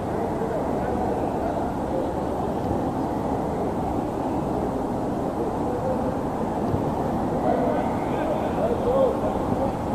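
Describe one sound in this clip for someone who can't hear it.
Men shout to each other from a distance across an open outdoor pitch.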